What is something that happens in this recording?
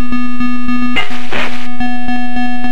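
A short hissing blast of a game sound effect bursts out.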